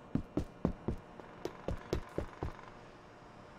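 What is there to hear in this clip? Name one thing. Footsteps clang on a metal roof.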